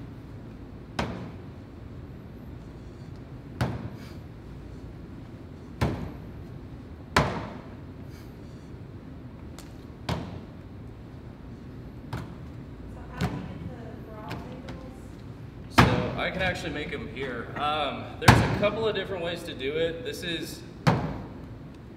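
Dough slaps down hard on a table again and again.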